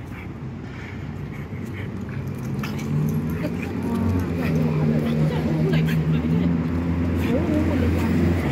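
Small dogs growl and yap at each other close by.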